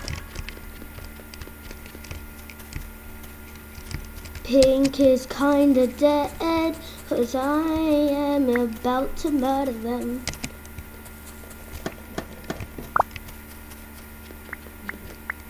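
Light game footsteps patter quickly.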